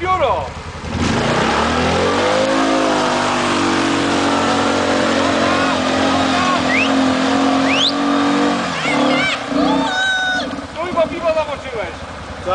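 A quad bike engine revs hard and roars.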